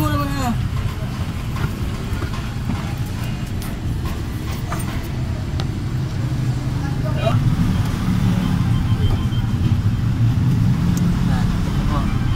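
An engine idles with a steady low rumble.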